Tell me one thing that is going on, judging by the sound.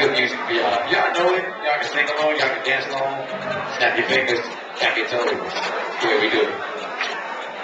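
A young man raps into a microphone over loudspeakers in an echoing room.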